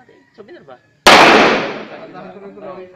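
A pistol fires a single loud shot that echoes outdoors.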